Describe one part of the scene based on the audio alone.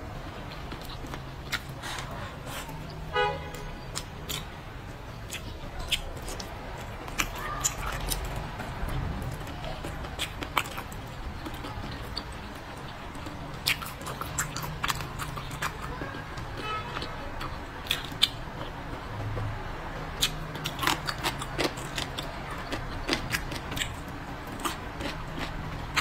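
A young woman slurps and sucks food, close to a microphone.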